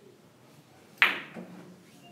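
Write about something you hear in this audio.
A cue strikes a billiard ball with a sharp crack.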